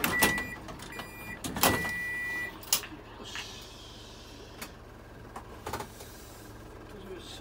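A train hums and rumbles steadily.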